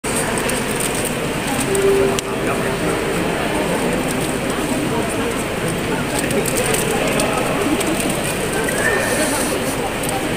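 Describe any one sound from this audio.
A mixed choir sings together in a large echoing hall.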